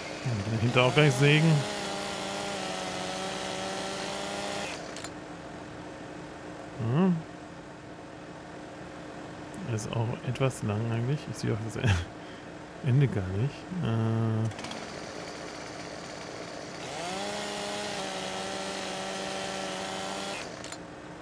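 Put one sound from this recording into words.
A chainsaw engine revs up and whines steadily while cutting.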